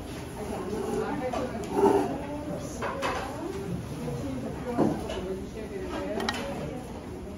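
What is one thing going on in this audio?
A young woman talks calmly close by.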